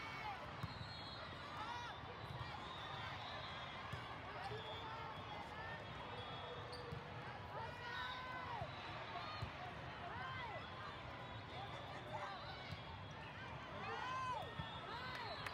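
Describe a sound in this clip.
A ball thumps off players' hands and forearms.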